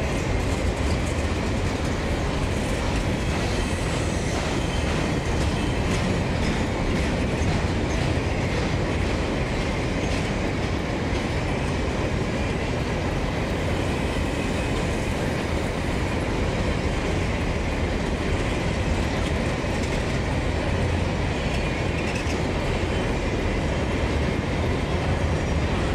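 A long freight train rumbles steadily past, close by.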